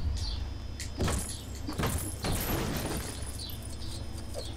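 Small coins scatter and jingle with bright clinks.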